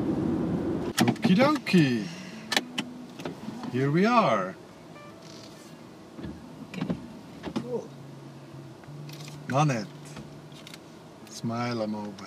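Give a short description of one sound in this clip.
A man speaks and laughs close by.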